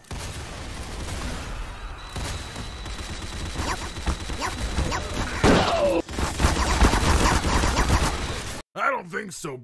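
A heavy machine gun fires in rapid, rattling bursts.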